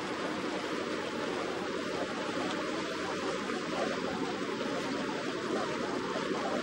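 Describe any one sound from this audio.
A boat engine chugs steadily nearby.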